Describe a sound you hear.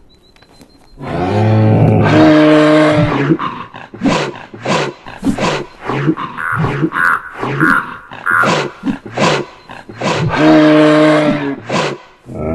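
A moose bellows loudly.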